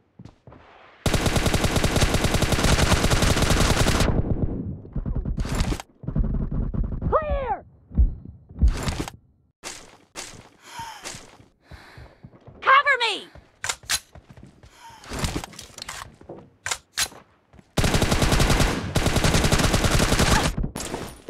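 Automatic gunfire rattles in fast, rapid bursts.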